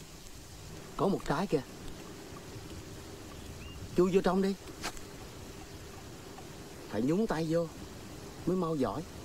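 A man speaks calmly up close, in short phrases.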